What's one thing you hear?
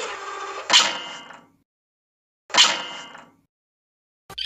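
A hammer strikes with a ringing clang.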